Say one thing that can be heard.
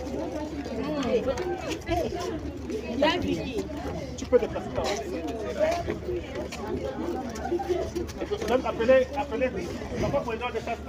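A crowd of young women chatter nearby.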